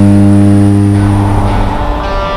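Wind rushes past an open aircraft door.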